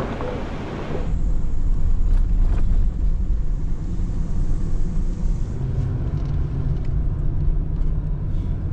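An engine rumbles low and steady from inside a vehicle.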